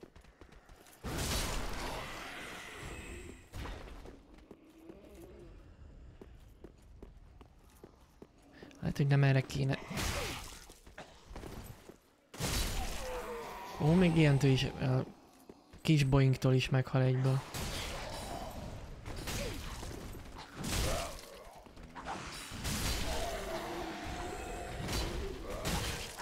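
Swords swing and clang in combat.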